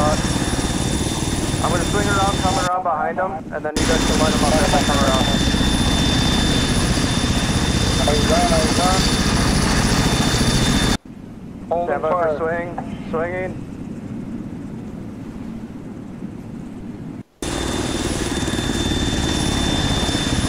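A helicopter's rotor thumps and its engine roars steadily.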